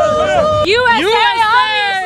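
A young man speaks excitedly up close.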